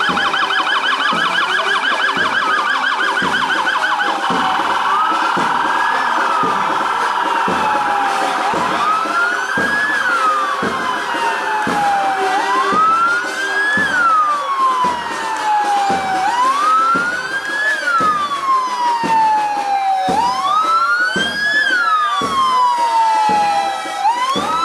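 Sirens wail loudly, first in a fast warble and then in slow rising and falling sweeps.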